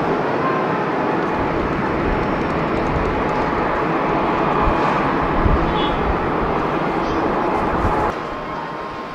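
A jet airliner roars loudly as it climbs away.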